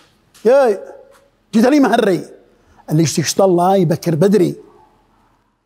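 A man speaks loudly and with feeling, close by.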